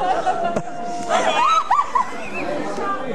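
An elderly man laughs loudly.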